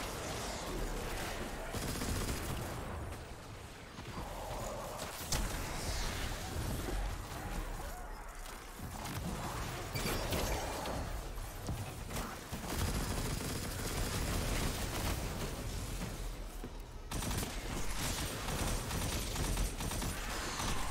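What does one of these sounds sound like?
Gunfire cracks in rapid bursts.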